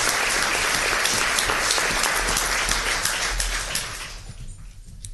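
A crowd applauds loudly in an echoing room.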